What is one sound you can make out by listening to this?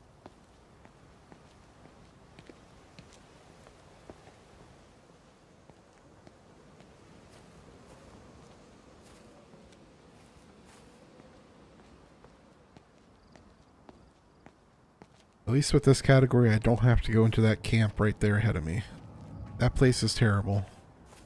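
Footsteps walk steadily along a paved road.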